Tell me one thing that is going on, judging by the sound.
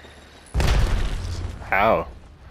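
A rifle fires a rapid burst close by.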